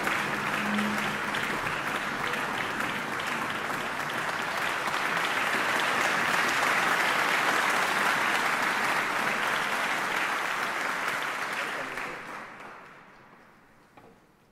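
An audience applauds loudly in a large hall, then the clapping fades away.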